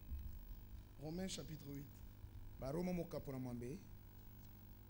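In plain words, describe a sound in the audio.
A man speaks slowly into a microphone over loudspeakers.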